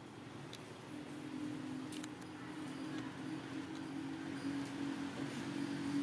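Leaves rustle softly as a monkey shifts among the plants.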